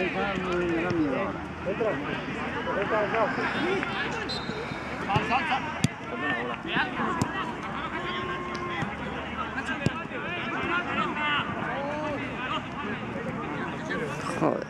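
Men shout and call to each other across an outdoor pitch.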